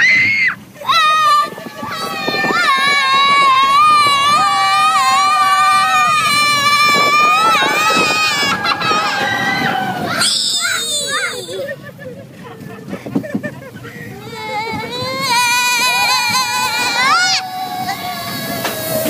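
A young girl screams loudly and shrilly, close by.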